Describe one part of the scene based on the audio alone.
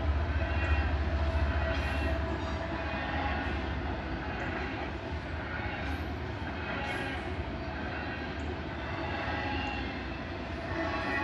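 A railroad crossing bell rings rapidly and steadily.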